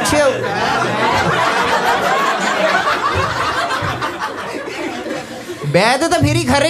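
An audience of men and women shouts and chatters together.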